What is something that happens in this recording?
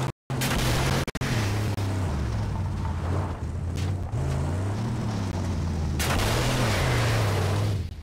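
Tyres skid and scrape over sand and gravel.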